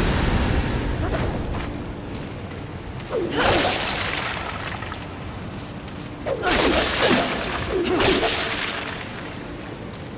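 Footsteps run across hard stone.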